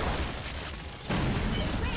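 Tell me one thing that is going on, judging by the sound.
A fiery explosion bursts.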